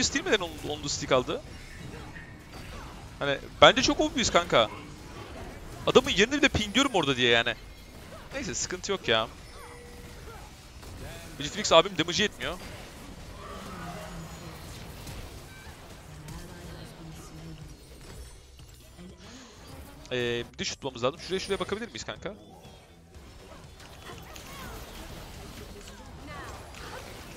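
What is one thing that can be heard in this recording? Magic blasts and clashing weapons sound in a video game battle.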